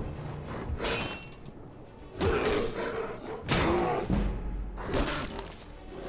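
A sword strikes a bear with heavy thuds.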